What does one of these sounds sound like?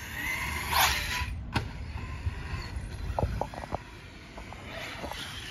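Wind blows outdoors, rumbling softly.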